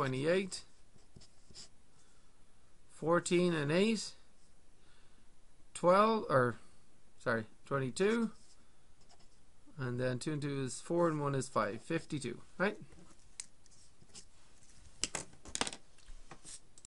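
A felt marker squeaks and scratches on paper.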